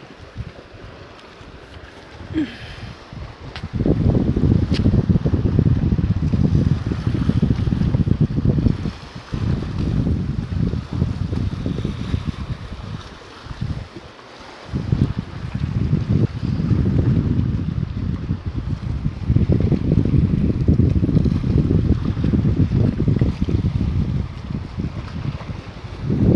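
Small sea waves wash against rocks.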